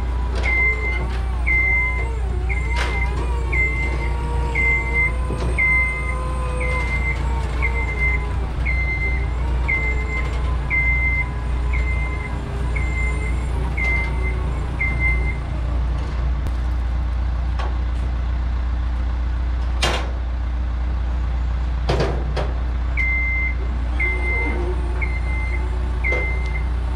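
A lift's warning alarm beeps over and over at an even pace.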